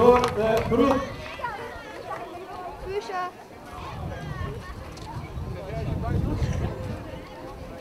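A crowd of men and women chatters nearby.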